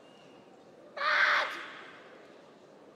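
A young woman lets out a loud, sharp shout nearby.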